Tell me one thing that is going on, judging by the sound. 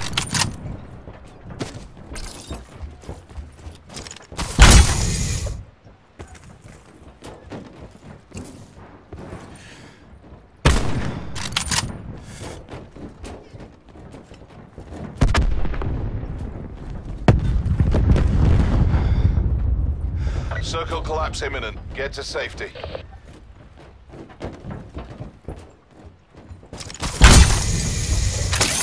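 Footsteps thud quickly on a hollow metal roof.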